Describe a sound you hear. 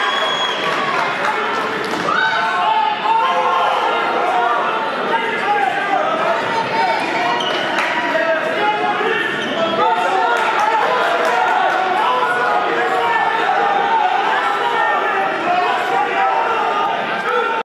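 A large crowd cheers and chatters in an echoing gym.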